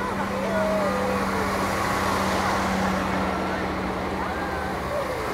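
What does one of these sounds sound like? A heavy truck engine rumbles as it drives past.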